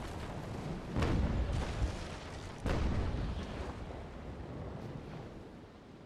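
Waves wash against a ship's hull.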